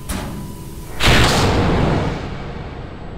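A metal locker door slams shut with a loud bang.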